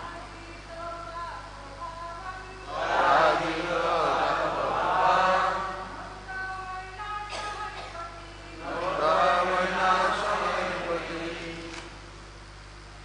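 A group of men and women chant together in a large echoing hall.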